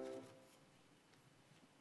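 A piano plays a final chord that fades away.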